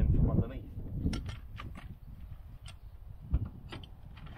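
Metal tools clink and tap against metal.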